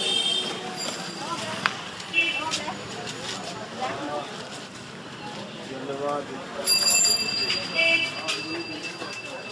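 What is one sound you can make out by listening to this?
Men talk nearby in a busy street.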